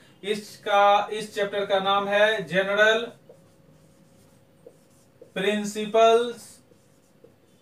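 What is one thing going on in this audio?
A young man speaks calmly and clearly, close by.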